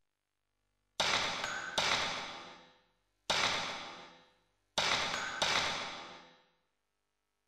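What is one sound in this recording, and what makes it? A game menu chimes with short echoing tones.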